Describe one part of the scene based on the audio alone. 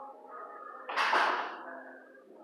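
A dog barks once close by.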